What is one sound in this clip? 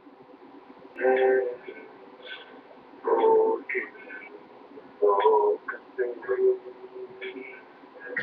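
A young man sings loudly up close.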